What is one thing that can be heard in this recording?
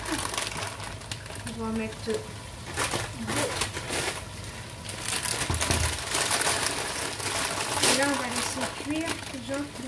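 Dry noodles drop into a pot of water with a splash.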